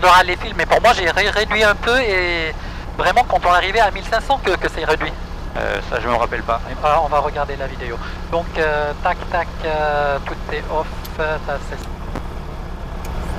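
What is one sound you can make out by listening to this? A young man talks calmly and close through a headset microphone.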